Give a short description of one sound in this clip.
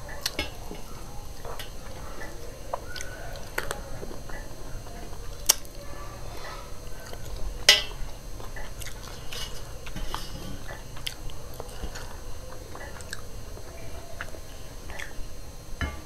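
A woman chews food noisily, close to a microphone.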